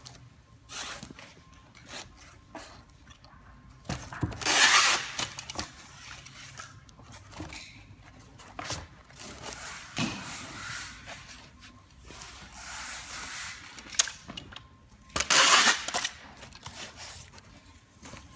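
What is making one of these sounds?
Hands rustle and scrape against cardboard and plastic wrap.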